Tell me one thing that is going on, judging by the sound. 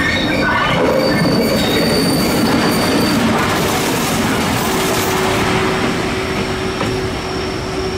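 Steel wheels clatter over rail joints.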